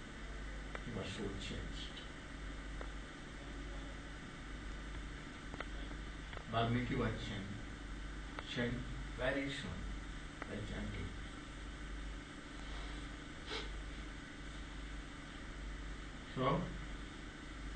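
An elderly man speaks slowly and calmly, close by.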